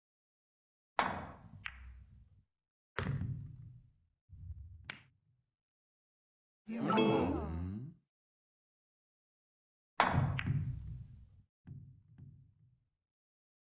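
Pool balls click sharply against each other and knock into the cushions.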